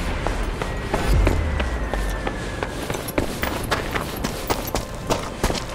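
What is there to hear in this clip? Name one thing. Boots run quickly over gravel and rubble.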